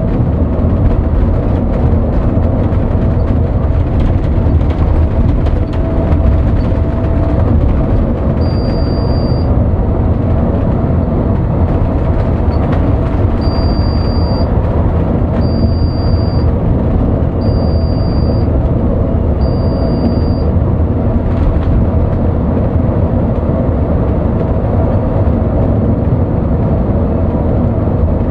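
A large vehicle's engine rumbles steadily at speed.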